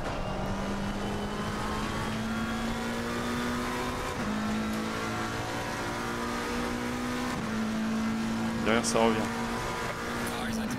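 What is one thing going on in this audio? A racing car engine drones steadily and shifts up through the gears.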